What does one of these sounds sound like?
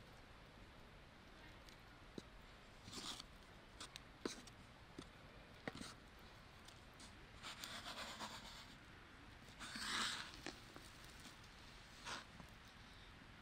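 A wooden spoon scrapes and stirs flour in a metal pan.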